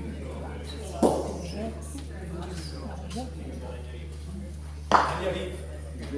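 A bowling ball knocks sharply against another ball.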